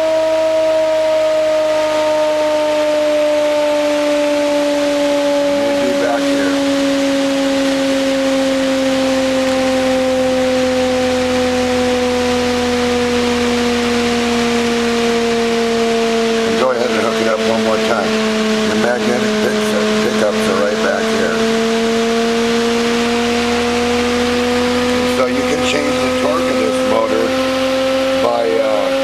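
An electric motor whirs with a steady hum that slowly sinks in pitch and then rises a little.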